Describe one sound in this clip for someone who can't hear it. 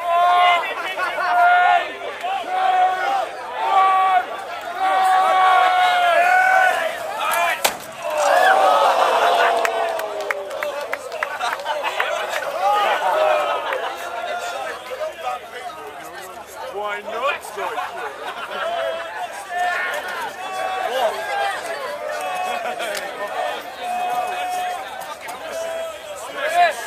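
A crowd of young men and women shout and chant loudly outdoors, close by.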